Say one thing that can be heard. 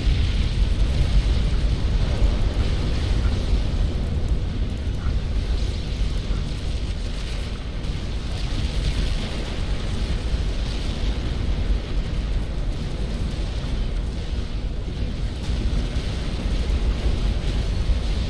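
Explosions and gunfire rumble in a continuous battle.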